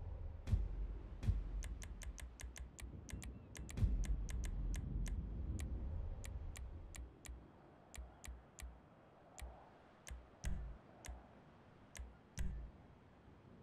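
Game menu clicks tick in quick succession.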